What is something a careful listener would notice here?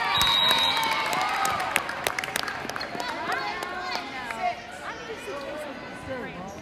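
Young female players cheer and shout in a large echoing gym.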